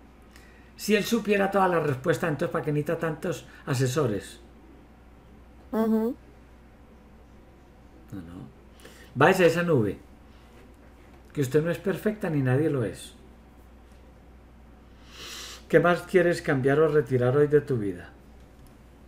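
A woman talks calmly close up, in short bursts with pauses.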